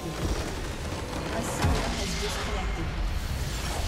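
A loud blast booms and crackles as a large structure explodes.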